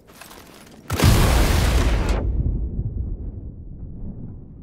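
A huge explosion booms and rumbles away.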